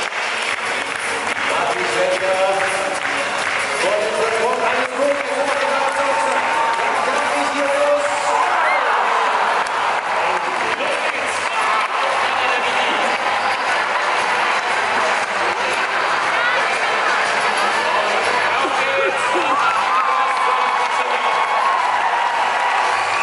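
A large crowd murmurs and chatters in a wide open arena.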